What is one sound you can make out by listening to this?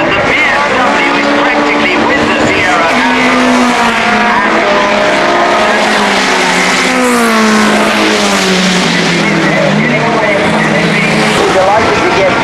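A racing car engine roars loudly as the car speeds past, its pitch rising and falling with gear changes.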